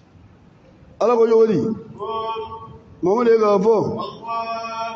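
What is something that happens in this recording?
A man chants loudly into a microphone in a large echoing hall.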